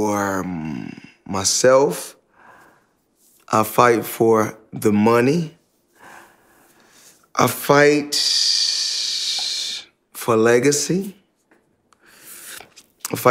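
A man speaks calmly and closely, in short bursts with pauses.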